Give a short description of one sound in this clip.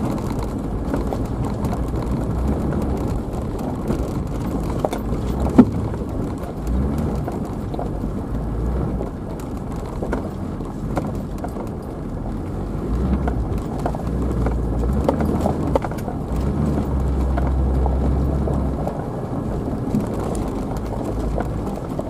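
Tyres crunch and bump over loose stones and gravel.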